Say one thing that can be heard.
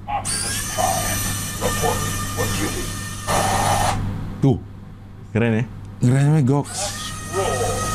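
A toy truck whirs as its motor drives it across a wooden floor.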